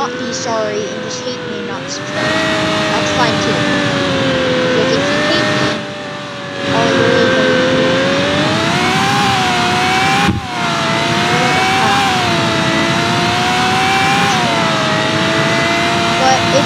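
A car engine hums loudly, its pitch rising and falling as it speeds up and slows down.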